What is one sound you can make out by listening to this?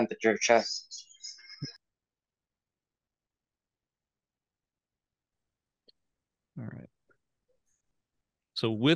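A man speaks calmly through an online call, in short bursts.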